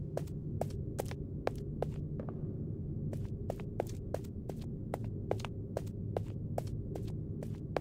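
Quick footsteps tap on a hard floor.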